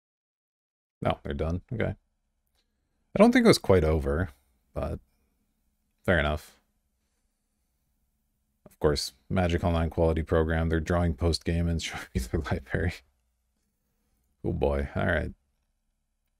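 A young man talks calmly and close to a microphone, in short bursts.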